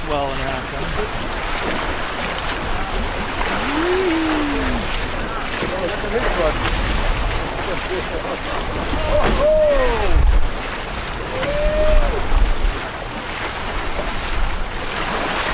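Waves splash and rush against a boat's hull.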